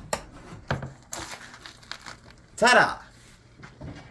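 A roast chicken thumps down onto a wooden board.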